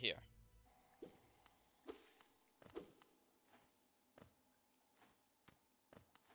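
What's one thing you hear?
A small figure's feet tap and thud softly as it runs and lands.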